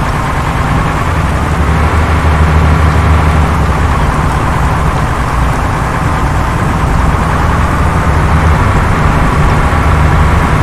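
Tyres roll over a road.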